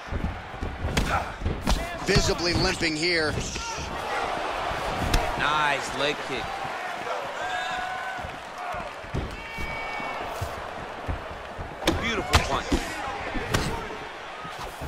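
Punches and kicks land with dull, heavy thuds.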